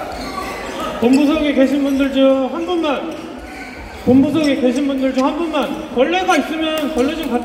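Young men call out and cheer loudly nearby.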